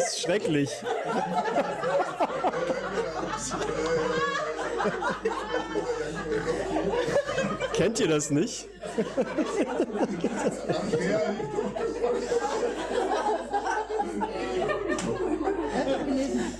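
A small group of men and women laughs.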